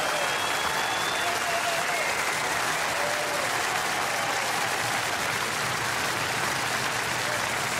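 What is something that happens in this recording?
A large crowd applauds loudly and steadily outdoors.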